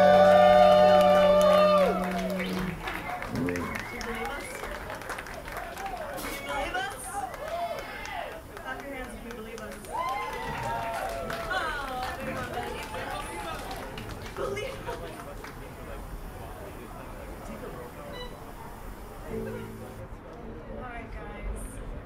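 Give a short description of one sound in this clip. Men and women in a crowd chat nearby outdoors.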